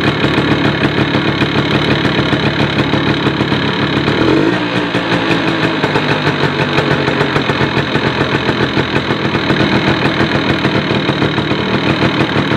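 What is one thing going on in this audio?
A motorcycle engine idles close by with a steady, fast putter.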